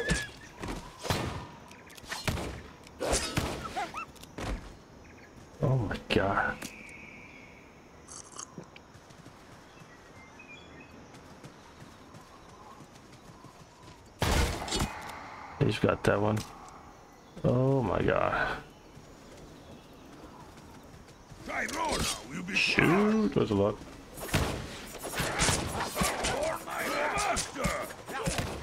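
Blows land with sharp thuds in a fight.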